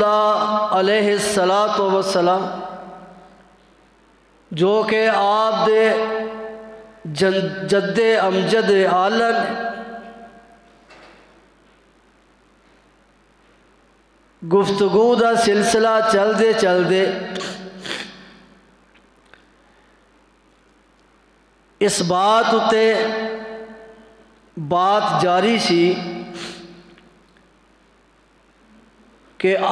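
An elderly man chants in a melodic voice through a microphone, in phrases with pauses between them.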